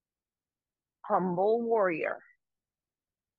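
A young woman speaks briefly and calmly, close by.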